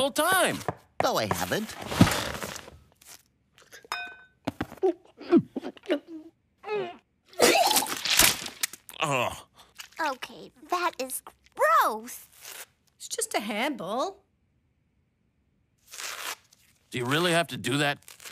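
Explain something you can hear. A man shouts frantically in a high, strained cartoon voice.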